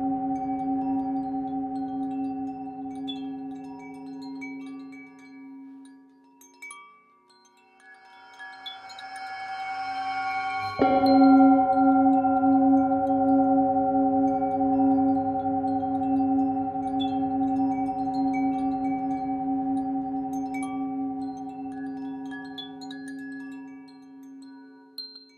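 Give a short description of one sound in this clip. A singing bowl hums with a deep ringing tone that swells and rings out.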